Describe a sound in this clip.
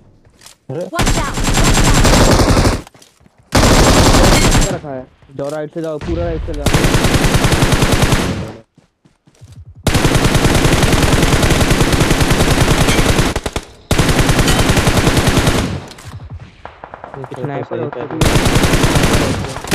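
Rapid gunfire rattles in long, loud bursts.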